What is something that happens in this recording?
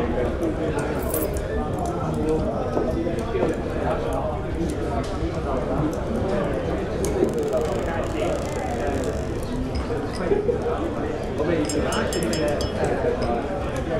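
Glasses and mugs clink now and then.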